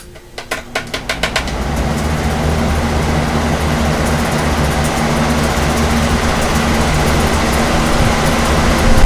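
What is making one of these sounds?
Several electric fans switch on and hum with a steady rushing whir.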